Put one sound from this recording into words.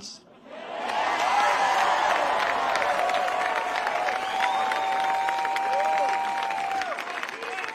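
A crowd whistles and shouts.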